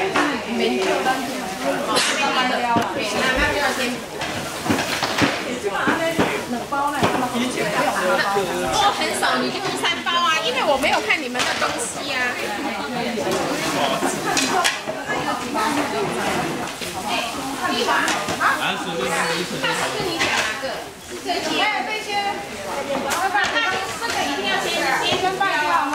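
Plates and boxes clatter and rustle on tables.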